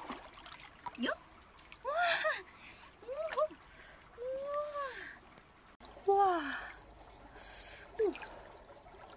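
A woman exclaims in a high, lively voice close by.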